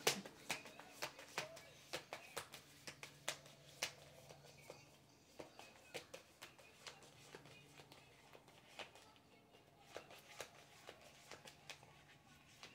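Playing cards are shuffled by hand with quick, sharp flicks.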